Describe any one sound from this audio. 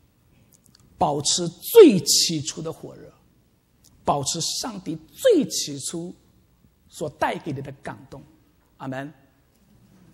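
A young man speaks with animation into a microphone in an echoing hall.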